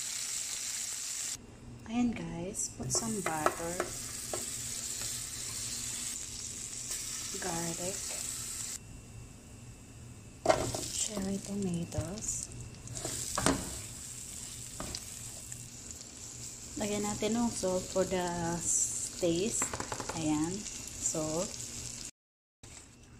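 Food sizzles and spits in a hot frying pan.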